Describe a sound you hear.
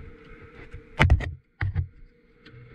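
A gear lever clicks as it is moved.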